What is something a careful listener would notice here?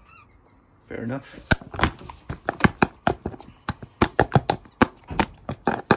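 A gull's beak pecks and taps against a plastic tub.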